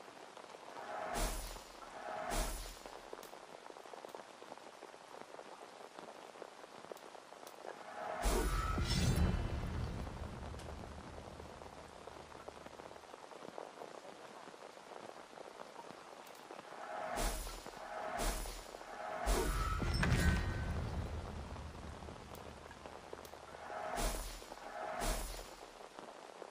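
Short chimes ring out one after another.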